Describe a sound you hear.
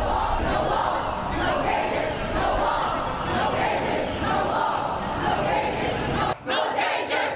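A crowd of protesters chants loudly outdoors.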